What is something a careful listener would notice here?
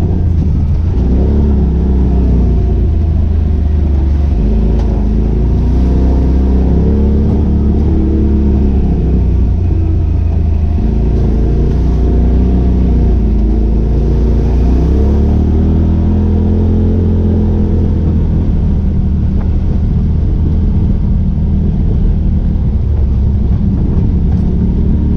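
Tyres roll over a rough, wet dirt track.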